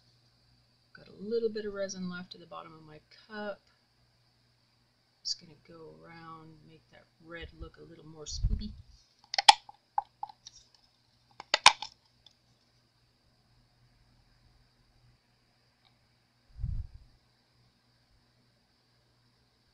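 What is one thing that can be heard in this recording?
A wooden stick scrapes softly inside a plastic cup.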